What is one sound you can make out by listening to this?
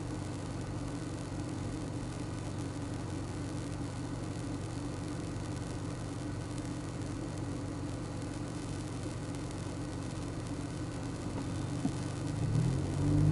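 A car engine idles with a low, steady hum, heard from inside the car.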